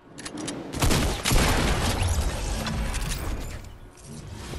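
A rifle fires a burst of gunshots.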